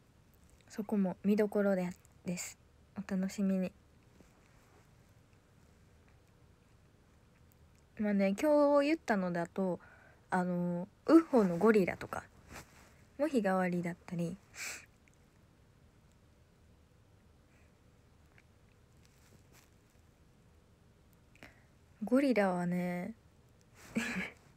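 A young woman talks softly and cheerfully close to a microphone, in short bursts with pauses.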